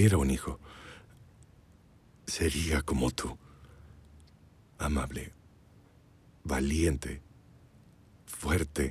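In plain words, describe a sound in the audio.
A man speaks softly and warmly, close by.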